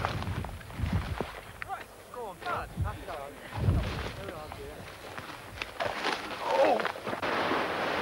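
Footsteps crunch and rustle through dry brush.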